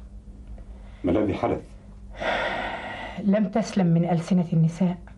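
A woman speaks emphatically nearby.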